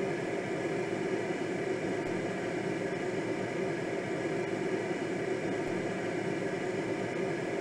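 Air rushes steadily past a glider in flight.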